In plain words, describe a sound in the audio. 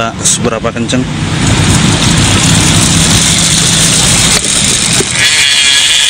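A bicycle freehub buzzes with rapid clicking as a wheel spins.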